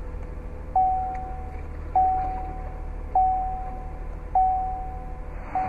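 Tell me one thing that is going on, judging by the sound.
A car's dashboard chime dings at a regular pace.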